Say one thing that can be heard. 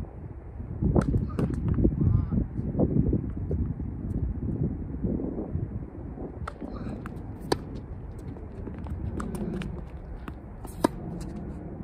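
A tennis ball is struck with sharp pops of a racket.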